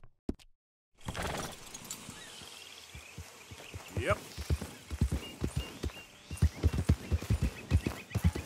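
A horse gallops over soft ground with heavy hoofbeats.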